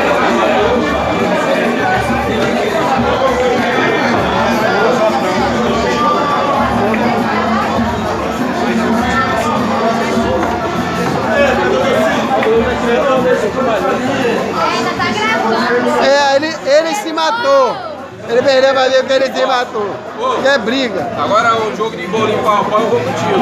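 A crowd of men chatters loudly all around.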